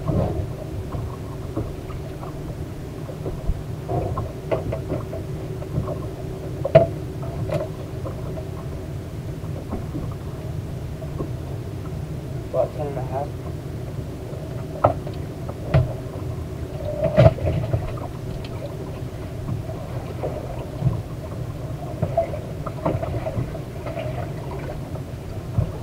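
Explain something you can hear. Small waves slap against a boat's hull.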